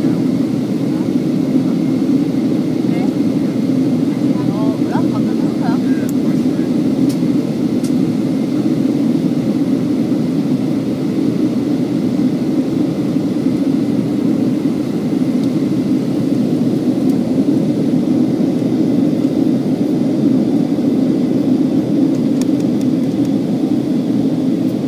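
Jet engines roar in a steady, deep drone inside an airliner cabin in flight.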